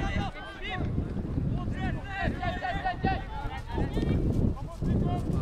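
Adult spectators chatter close by outdoors.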